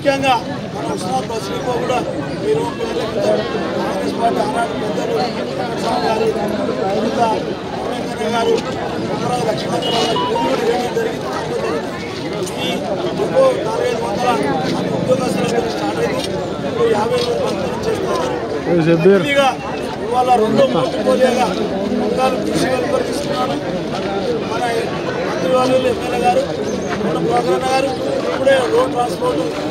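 A middle-aged man speaks with animation.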